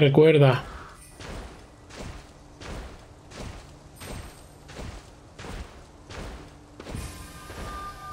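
Footsteps thud quickly and evenly on the ground.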